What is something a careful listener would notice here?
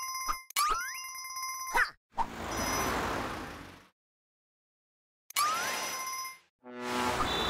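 Bright electronic chimes ring in quick runs.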